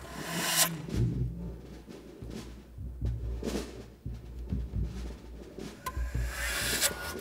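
A drum is struck with mallets in a steady low pulse.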